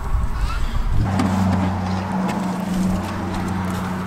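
A plastic lid pops off a bucket.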